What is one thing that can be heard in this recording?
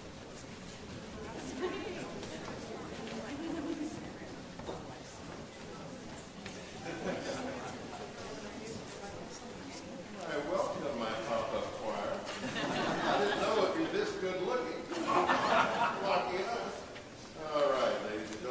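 A large choir sings in an echoing hall.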